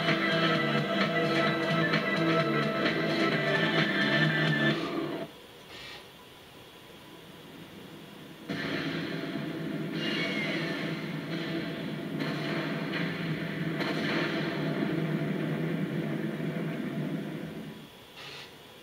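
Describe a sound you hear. Video game music plays from a television speaker.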